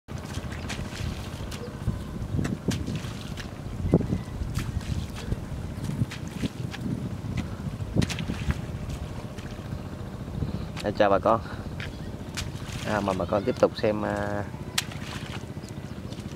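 A man's feet splash and squelch through shallow water and mud.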